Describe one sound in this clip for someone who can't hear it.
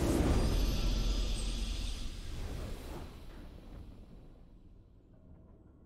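A triumphant game fanfare swells and fades away.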